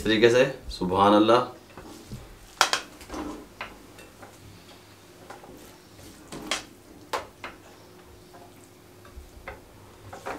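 A metal spatula scrapes and taps against a ceramic plate.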